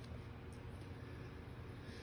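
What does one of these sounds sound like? A sheet of paper rustles as a hand handles it.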